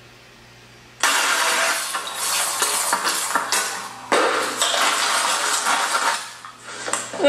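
Vegetables sizzle loudly in a hot pan.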